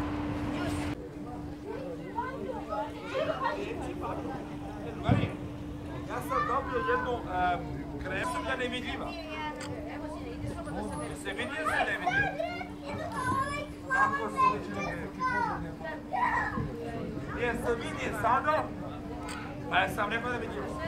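Children chatter and call out outdoors.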